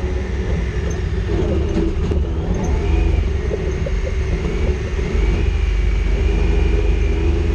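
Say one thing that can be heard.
An off-road vehicle engine rumbles steadily up close.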